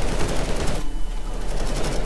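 Rapid gunfire cracks loudly.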